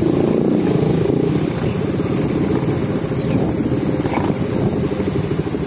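A single-cylinder motorcycle engine runs while cruising on a road.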